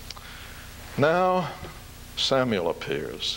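An elderly man speaks slowly and deliberately into a microphone.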